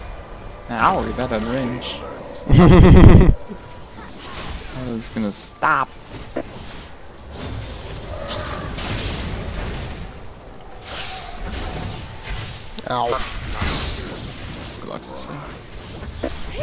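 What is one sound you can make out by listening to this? Magic blasts and clashing hits burst out in quick bursts as fantasy fighters battle.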